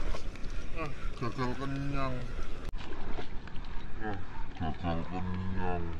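Water sloshes around a man's legs as he wades.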